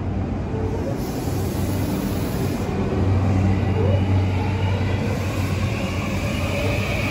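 A commuter train rumbles past close by on the tracks.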